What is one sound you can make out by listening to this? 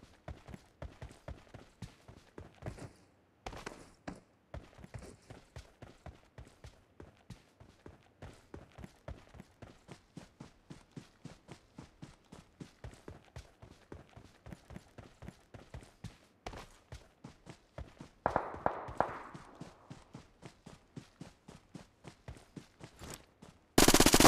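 Footsteps thud quickly on grass as a game character runs.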